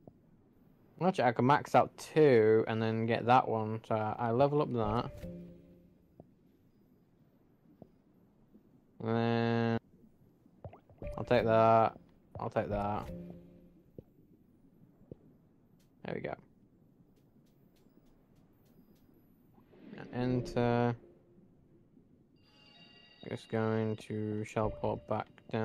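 Short bright game chimes sound as menu choices are made.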